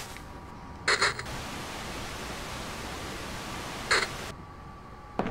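An old television hisses with static.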